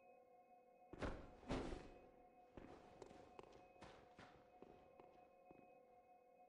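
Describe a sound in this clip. A ghostly figure vanishes with a sudden burst of rushing, crackling sound.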